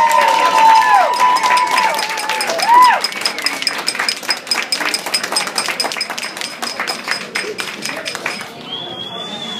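A crowd applauds and cheers in a lively room.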